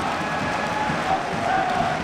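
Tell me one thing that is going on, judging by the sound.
Fans clap their hands.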